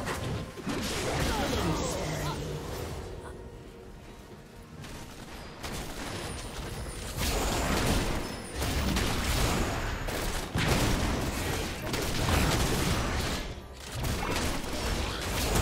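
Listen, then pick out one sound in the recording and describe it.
Magic spells whoosh and crackle during a fight in a video game.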